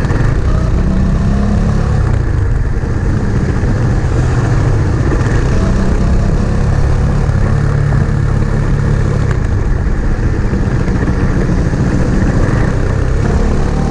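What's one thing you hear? Motorcycle engines rumble and roar as they ride past.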